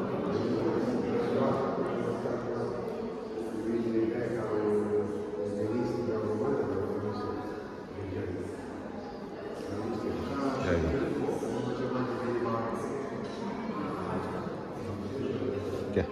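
People talk in low voices in an echoing hall.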